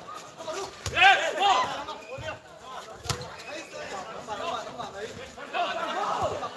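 Players shout to one another across an outdoor court.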